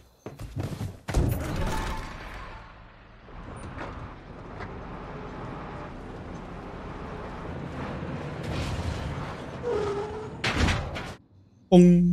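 A truck engine idles and rumbles steadily.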